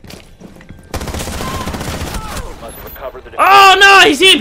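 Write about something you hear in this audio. Rapid gunfire rattles at close range.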